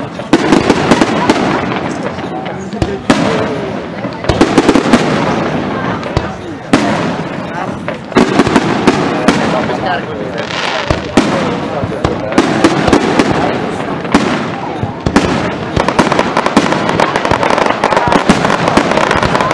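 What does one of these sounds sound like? Fireworks crackle and sizzle as sparks fall.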